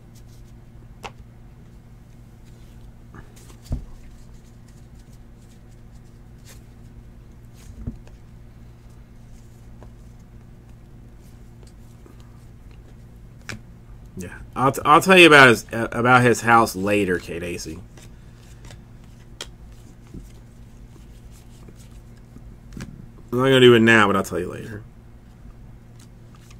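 Trading cards softly rustle and flick as a hand sorts through them.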